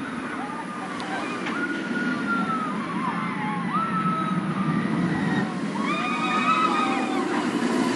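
Riders scream.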